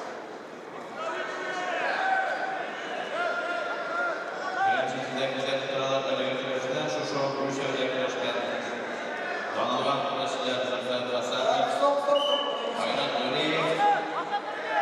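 Men in a crowd shout and cheer in a large echoing hall.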